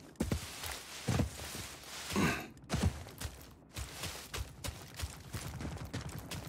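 Footsteps thud softly through undergrowth.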